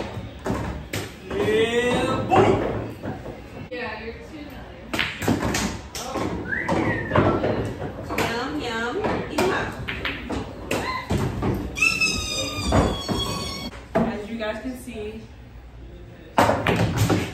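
Pool balls clack together on a table.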